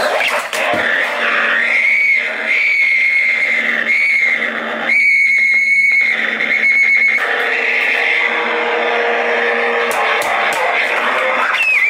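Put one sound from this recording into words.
An electric guitar whines with high, wavering feedback through an amplifier.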